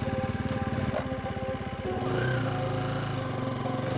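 A motorbike engine rumbles as it rides up and stops.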